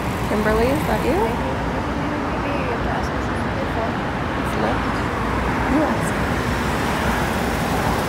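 Traffic hums along a nearby street.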